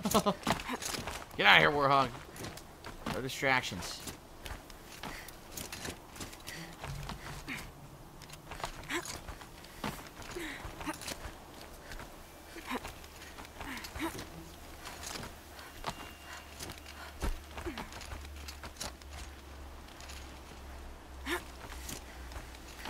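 Hands grab and scrape on rock as someone climbs.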